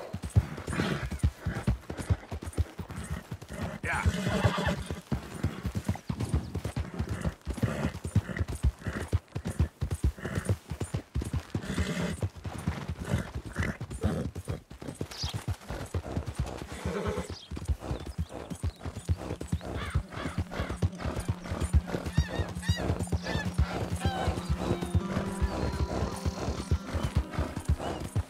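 Horse hooves thud rapidly on a dirt path.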